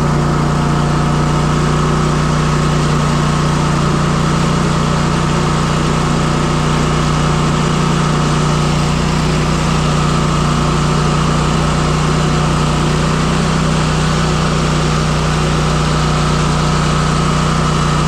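A lawn mower engine drones loudly and steadily up close.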